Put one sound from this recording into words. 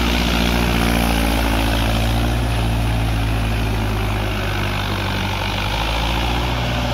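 Tractor wheels churn and splash through wet mud.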